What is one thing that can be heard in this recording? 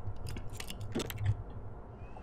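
A lock clicks as it is picked open.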